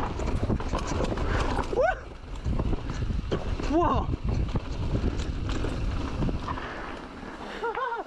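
Bike tyres rumble and rattle over a rough dirt trail.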